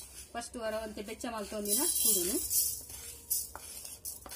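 Dry seeds pour and patter into a metal pan.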